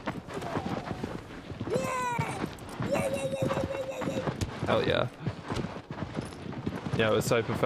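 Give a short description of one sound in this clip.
A horse gallops with hooves thudding on sand.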